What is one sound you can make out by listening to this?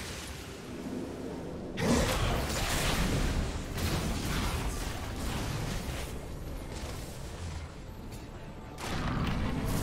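Video game spell effects whoosh and crackle during a fight.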